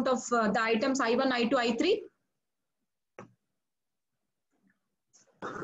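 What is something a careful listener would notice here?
A woman speaks calmly through a microphone, as on an online call.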